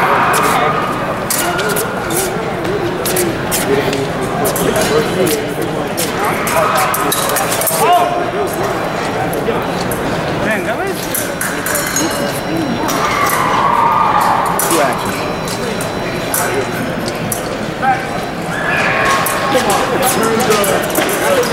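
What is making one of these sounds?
Blades clink and clash together.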